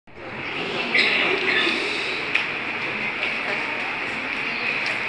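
A young man speaks into a microphone through loudspeakers in an echoing hall.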